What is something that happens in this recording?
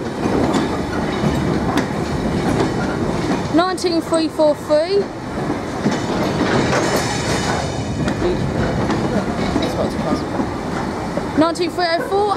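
Loaded stone hopper wagons rumble and clatter past over the rails.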